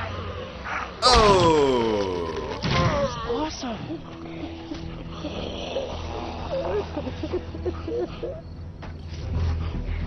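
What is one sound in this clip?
A zombie groans and snarls with a loud, rasping roar.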